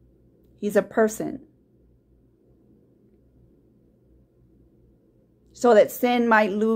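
A woman speaks calmly and close by, with a pause.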